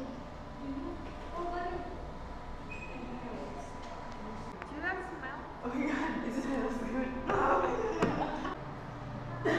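Young women talk quietly together.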